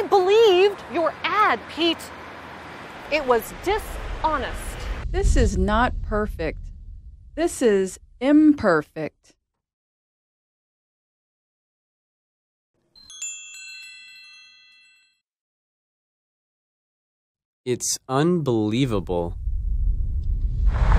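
A woman speaks emphatically into a microphone outdoors.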